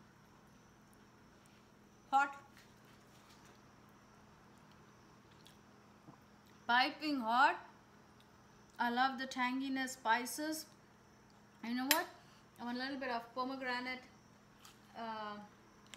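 A fork clinks on a plate.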